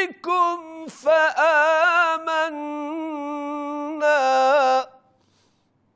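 A man chants a recitation in a melodic, drawn-out voice through a microphone, in an echoing hall.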